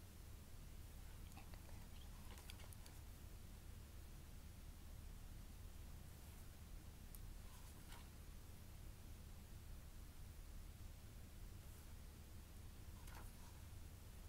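Pages of a glossy book rustle and flip as they are turned by hand.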